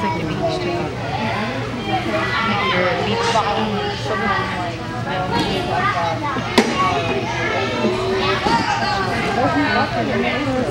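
Young children chatter and call out in an echoing hall.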